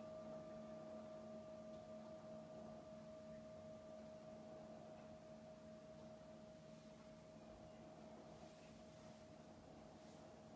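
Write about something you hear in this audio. A singing bowl rings with a steady, slowly fading hum.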